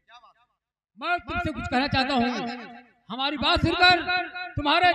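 A middle-aged man declaims loudly and with animation through a microphone.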